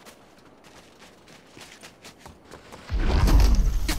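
Footsteps crunch quickly through snow.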